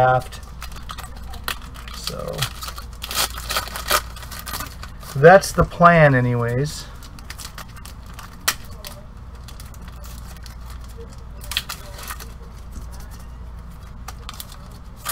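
Gloved hands rustle and crinkle foil card wrappers up close.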